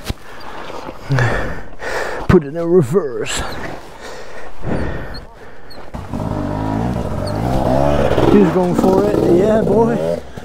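A dirt bike engine revs hard in short bursts close by.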